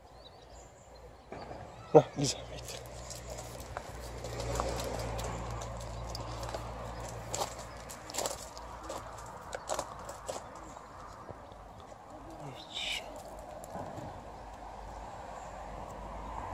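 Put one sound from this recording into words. A dog's paws patter on gravel nearby.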